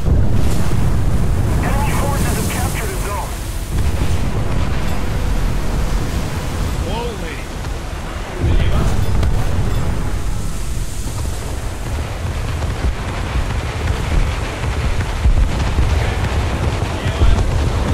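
Water rushes and splashes against a boat's hull.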